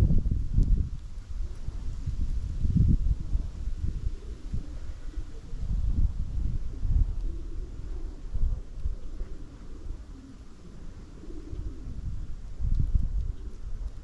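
Small birds peck and scratch softly at loose seeds.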